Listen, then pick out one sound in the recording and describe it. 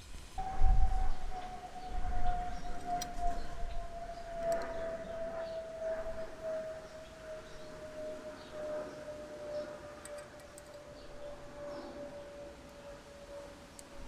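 Small metal parts click together in hands.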